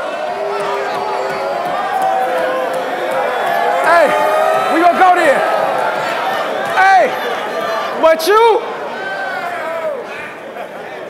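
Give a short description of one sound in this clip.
A crowd cheers and shouts.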